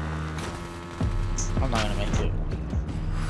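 Water splashes under a dirt bike.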